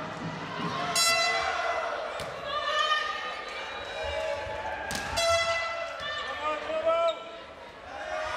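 A volleyball is struck hard by a player's hand.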